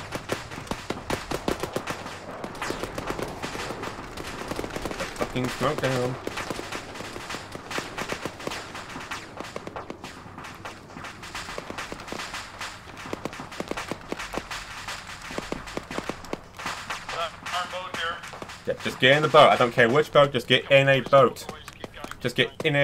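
Footsteps rustle quickly through grass and brush.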